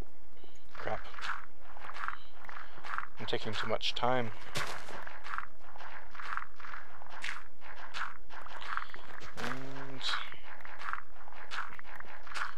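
A shovel digs repeatedly into loose dirt with soft, crunchy scrapes.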